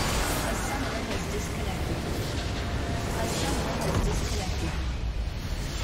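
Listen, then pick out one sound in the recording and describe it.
Video game spells crackle and boom in a busy fight.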